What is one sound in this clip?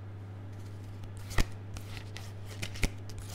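Playing cards riffle and snap while being shuffled.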